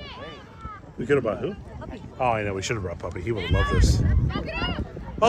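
Adults on the sideline call out and cheer close by.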